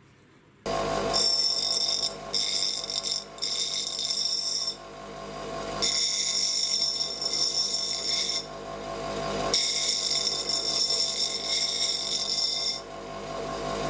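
A metal tool grinds against a spinning wheel with a high scraping whine, in bursts.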